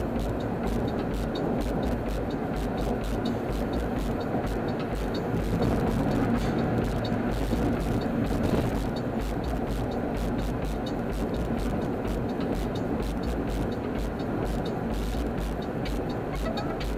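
A car's engine and tyres hum steadily from inside the car on a highway.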